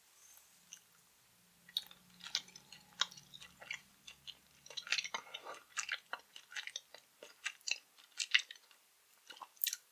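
A woman chews and sucks on candy with wet mouth sounds close to a microphone.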